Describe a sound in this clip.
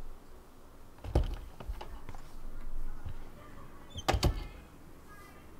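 A door opens and thuds shut.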